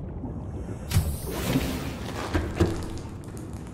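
A hatch door slides open with a mechanical whoosh.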